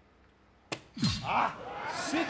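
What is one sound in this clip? A man shouts with excitement.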